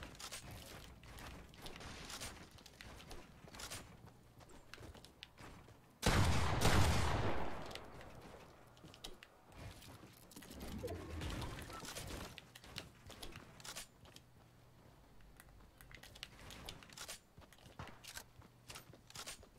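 Quick clicks and clatters of building pieces snapping into place.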